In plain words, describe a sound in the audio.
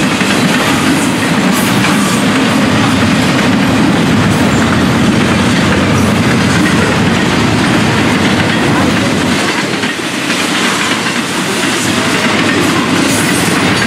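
A freight train rumbles steadily past close by.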